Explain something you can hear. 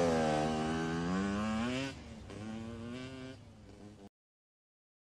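A car engine hums and revs up, then revs again more softly.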